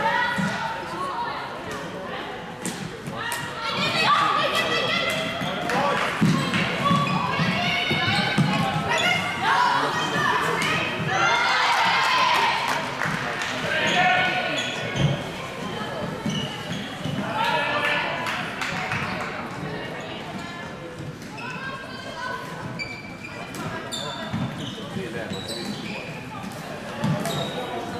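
Floorball sticks click against a plastic ball in an echoing hall.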